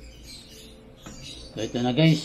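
A metal pan lid clinks as it is lifted.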